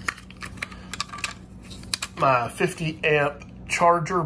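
Small plastic parts rattle and click in a hand.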